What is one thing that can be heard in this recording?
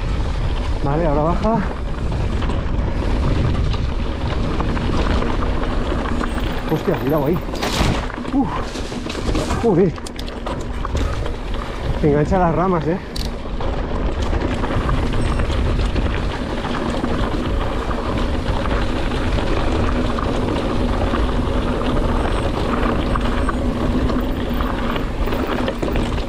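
Bicycle tyres roll and crunch over a rough dirt trail.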